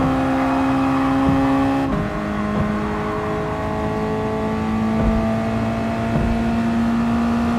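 A racing car engine roars at high revs, dropping in pitch at a gear change and then climbing steadily.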